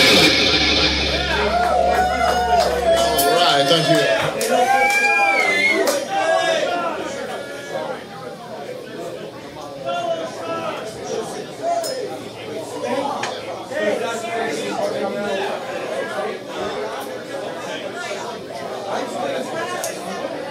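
A man sings through a microphone over a loudspeaker.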